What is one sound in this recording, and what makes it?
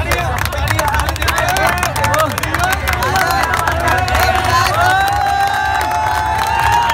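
A crowd of young men cheers and shouts excitedly close by.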